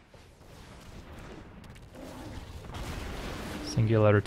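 A magical spell effect whooshes and shimmers.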